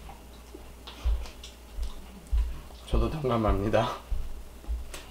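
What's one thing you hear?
A man chews food.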